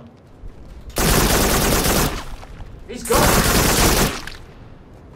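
A gun fires in loud, rapid bursts.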